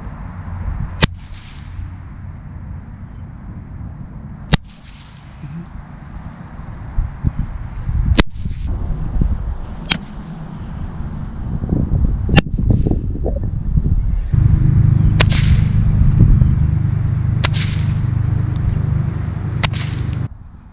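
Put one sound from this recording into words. A whip cracks sharply, again and again.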